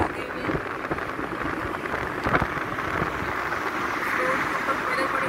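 Road noise rumbles steadily from a moving vehicle.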